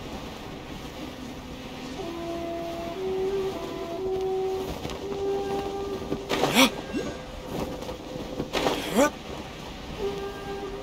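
Wind rushes steadily past a gliding figure.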